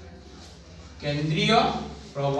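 A man speaks loudly, as if teaching.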